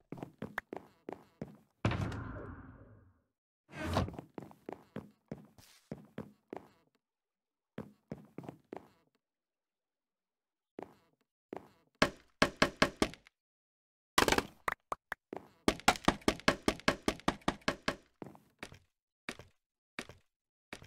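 Footsteps tap quickly on a wooden floor.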